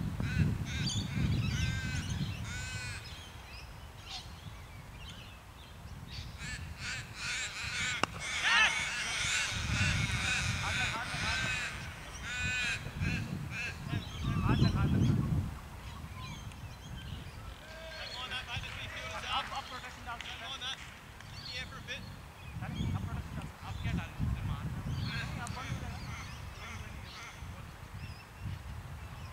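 Wind gusts across an open field, rumbling on the microphone.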